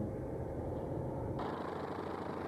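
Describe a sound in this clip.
A car engine rumbles.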